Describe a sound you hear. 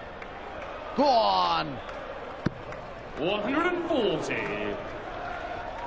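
A crowd chants and sings loudly.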